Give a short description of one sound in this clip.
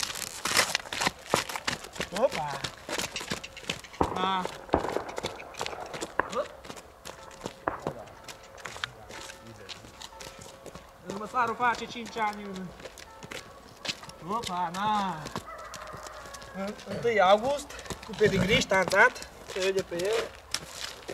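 Hooves clop on a gravel road.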